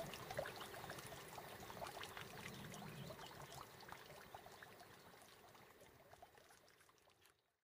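Water bubbles and ripples softly, slowly fading away.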